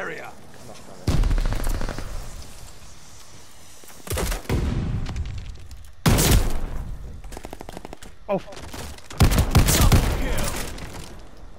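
Shotgun blasts boom with a heavy thump.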